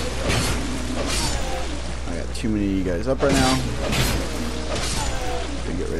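A sword slashes and strikes with sharp hits.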